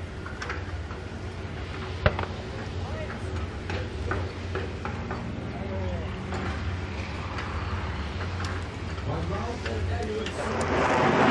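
Boat engines rumble steadily close by.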